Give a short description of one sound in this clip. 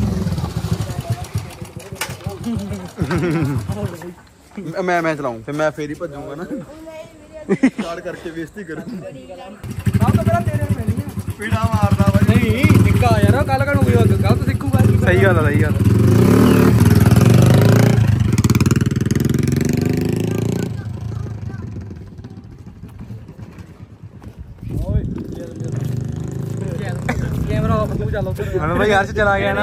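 Young men talk and laugh close by, outdoors.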